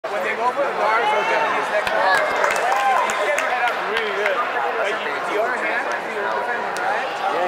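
A large crowd chatters and shouts, echoing through a big hall.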